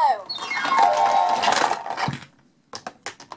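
A toy plays a bright electronic jingle.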